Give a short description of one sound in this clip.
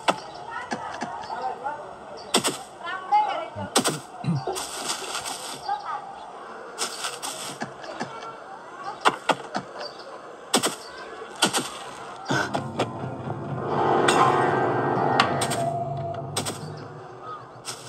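Video game sound effects play from a tablet's speaker.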